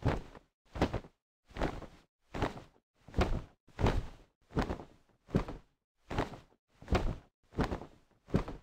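Large wings beat in a steady, even rhythm.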